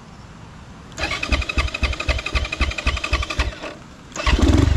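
A dirt bike engine putters unevenly close by.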